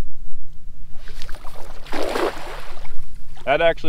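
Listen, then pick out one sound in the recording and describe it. A cast net splashes down onto shallow water.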